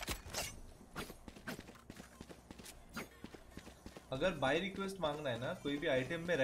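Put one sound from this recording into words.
Footsteps tap quickly on hard stone.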